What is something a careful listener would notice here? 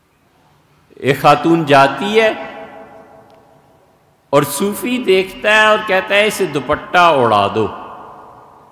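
An elderly man speaks with feeling into a microphone, his voice echoing in a reverberant room.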